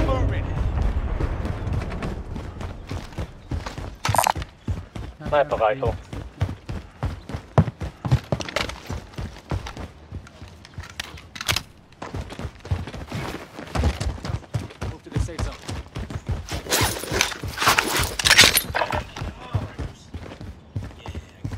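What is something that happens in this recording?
Footsteps tap quickly on pavement.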